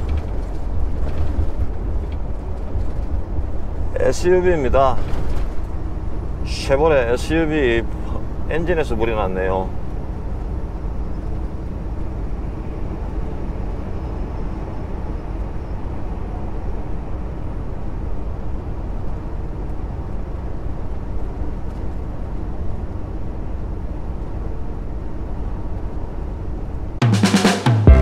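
A truck engine rumbles steadily inside the cab while driving.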